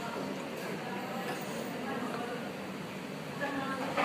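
A small child slurps from a bowl.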